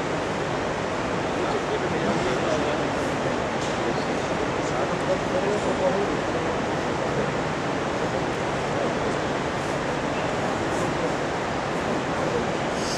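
Bodies shuffle and thump softly on a mat.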